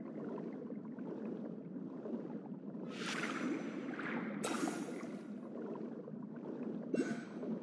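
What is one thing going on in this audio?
Water rumbles and bubbles steadily underwater.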